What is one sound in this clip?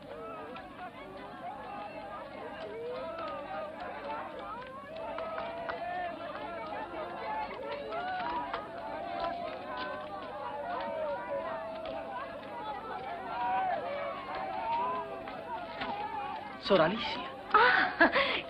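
A crowd of men and women chatter and call out all around.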